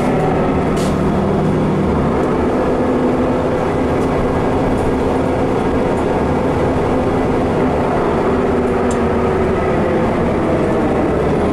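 A bus engine hums steadily while the bus drives along.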